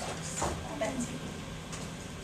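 A girl speaks nearby in a room, reading out.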